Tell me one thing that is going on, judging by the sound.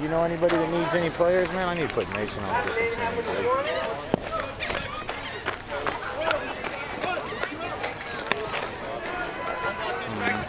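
Several voices shout and cheer nearby outdoors.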